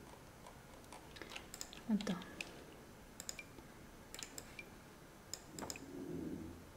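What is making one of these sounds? Short soft clicks of a game menu sound now and then.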